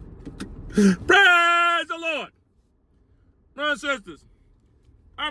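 A man speaks with animation close by, with a laugh in his voice.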